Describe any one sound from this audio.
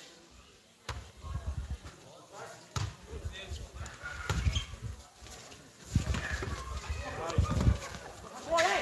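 A volleyball is struck with dull slaps.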